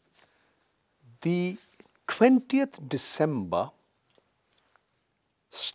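An elderly man speaks calmly and close into a microphone.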